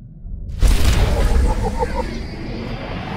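A bright game reward chime rings out.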